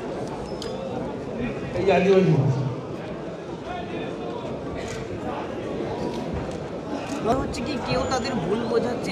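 A middle-aged man speaks forcefully into a microphone.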